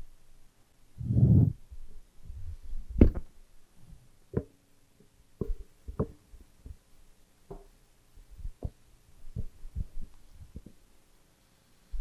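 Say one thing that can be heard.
A microphone bumps and knocks as it is handled.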